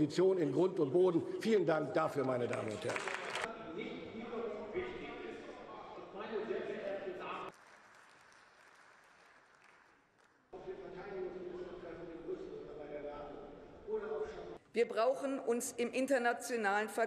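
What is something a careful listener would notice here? An elderly woman speaks firmly into a microphone.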